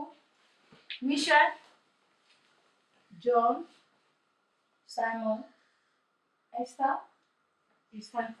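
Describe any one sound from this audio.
A woman speaks up close in short, animated bursts.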